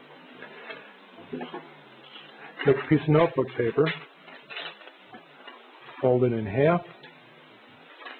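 Paper rustles as hands fold and smooth a sheet.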